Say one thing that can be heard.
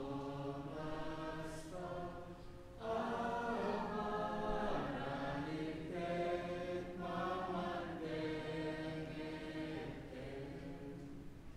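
A congregation sings a slow hymn together in a large echoing hall.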